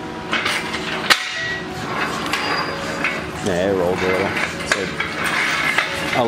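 Metal tools clank and knock against an engine.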